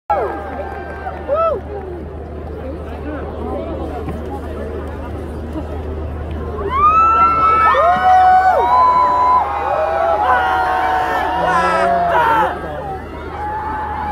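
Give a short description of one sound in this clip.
A large crowd cheers and screams with excitement outdoors.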